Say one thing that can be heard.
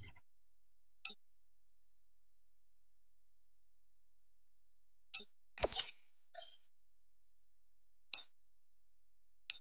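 Short game menu clicks sound as buttons are pressed.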